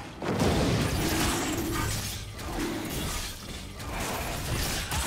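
Spell effects whoosh and crackle during a fight in a video game.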